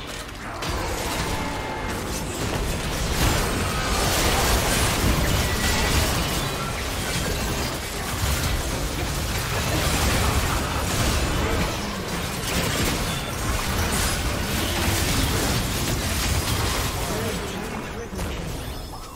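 Game spell effects and weapon hits crackle and boom in a busy fight.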